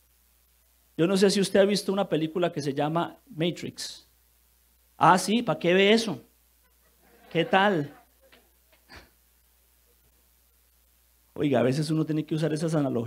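A man preaches with animation through a microphone, pausing between phrases.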